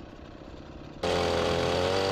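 A chainsaw cuts into wood.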